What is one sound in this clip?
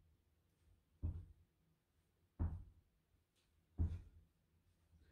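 Feet thump on a carpeted floor as a boy jumps through an exercise.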